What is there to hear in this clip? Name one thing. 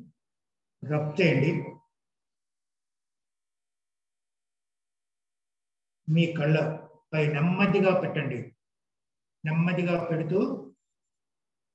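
A middle-aged man speaks calmly and slowly, close by, in short phrases with long pauses.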